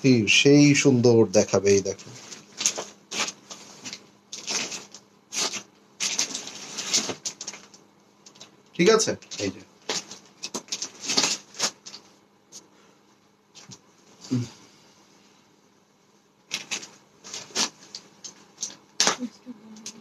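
Fabric rustles and swishes as it is handled.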